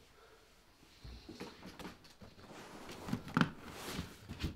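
Metal latches click as a case is opened.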